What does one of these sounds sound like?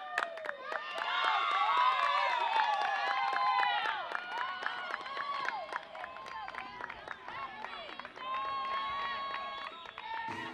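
Young women cheer and shout loudly nearby.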